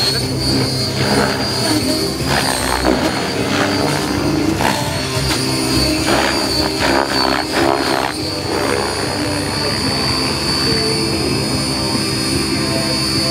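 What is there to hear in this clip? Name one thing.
A model helicopter's motor whines steadily at a high pitch.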